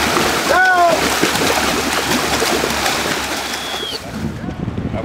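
Swimmers splash through choppy water close by.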